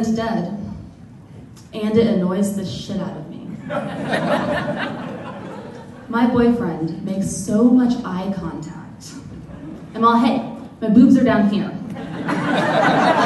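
A young woman speaks with animation into a microphone.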